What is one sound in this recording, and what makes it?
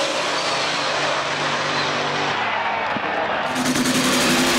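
Race car engines roar loudly as cars speed away, heard outdoors.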